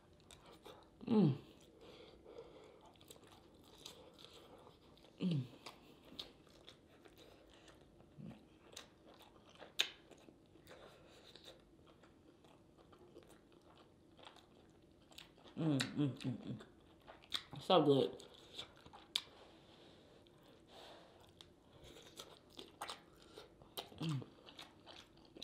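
A woman hums with pleasure close to the microphone.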